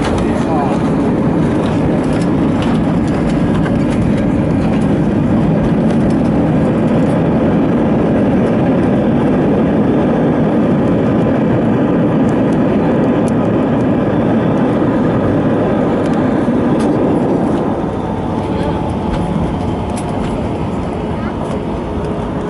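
An airliner rumbles and rattles as it rolls along the ground.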